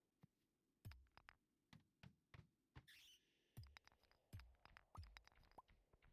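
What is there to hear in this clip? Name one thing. A pickaxe strikes stone with short knocks.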